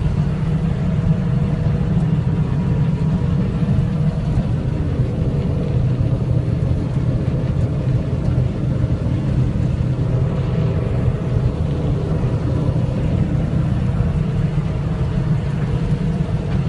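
A combine harvester engine drones loudly and steadily.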